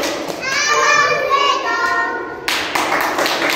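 Young children sing together.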